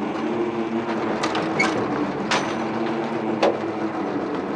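Footsteps thud and clank on a metal vehicle step.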